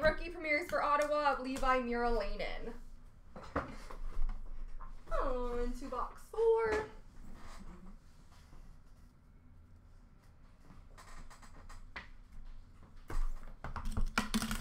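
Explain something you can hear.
Plastic packs tap and rustle as they are set down.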